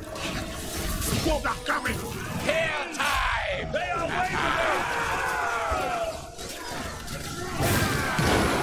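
Soldiers shout and scream in battle.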